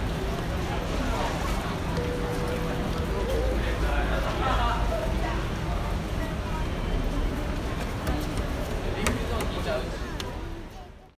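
Children chatter and call out nearby, outdoors.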